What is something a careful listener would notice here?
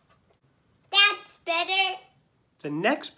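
A young boy speaks excitedly close by.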